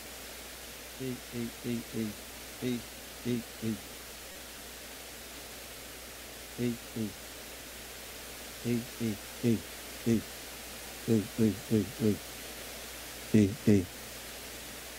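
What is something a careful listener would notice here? A man speaks quietly at a distance in a large room.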